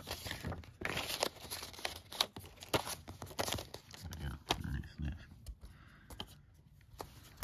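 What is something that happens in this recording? A plastic disc case clicks and rattles as a hand handles it.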